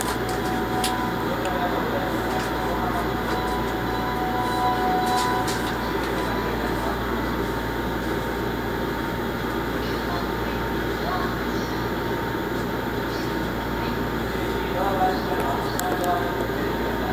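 A steady murmur of a busy station fills a large echoing hall.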